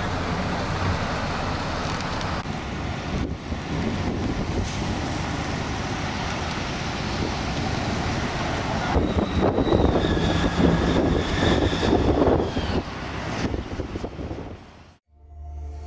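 Traffic hums along a street outdoors.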